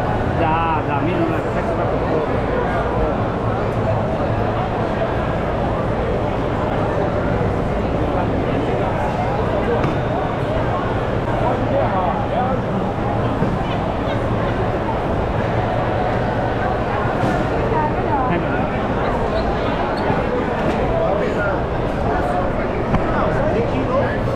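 A crowd chatters throughout a large, echoing hall.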